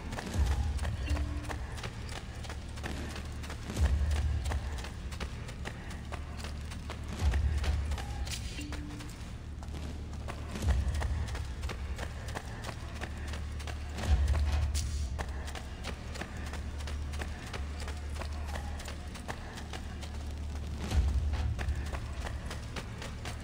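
Footsteps run quickly over stone steps and paving.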